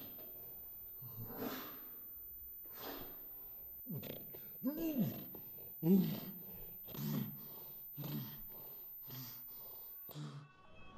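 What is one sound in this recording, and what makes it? A young woman breathes heavily close by.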